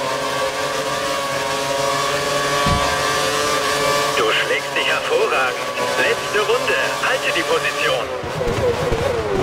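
A racing car engine screams at high revs.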